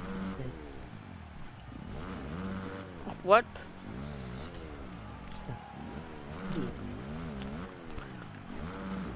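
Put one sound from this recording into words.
A dirt bike engine revs up and down as it races over bumps.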